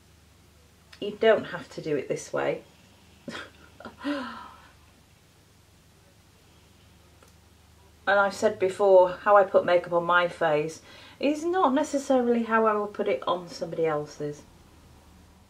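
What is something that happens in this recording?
A woman speaks calmly and close to a microphone.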